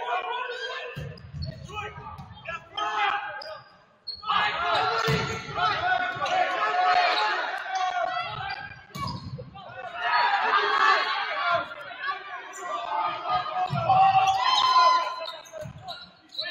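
A volleyball is struck with sharp thumps in a large echoing gym.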